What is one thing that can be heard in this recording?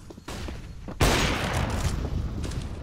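A rifle fires a single loud shot that echoes.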